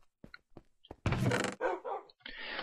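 A wooden chest creaks open.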